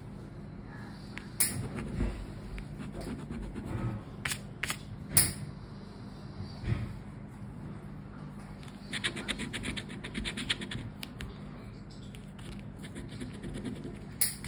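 A plastic scratcher scrapes rapidly across a card.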